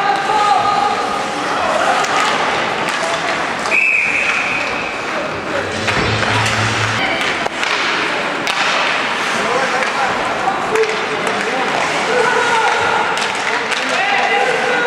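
Skates scrape and swish across ice.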